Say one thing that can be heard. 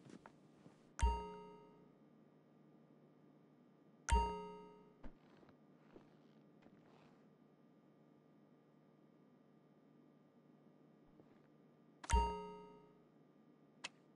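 A short bright chime rings out and fades.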